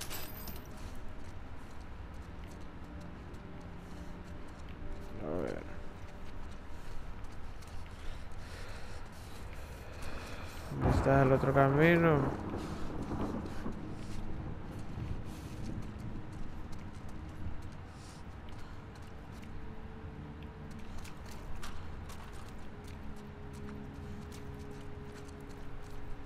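Footsteps shuffle slowly on a hard floor.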